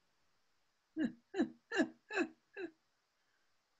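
An older man laughs over an online call.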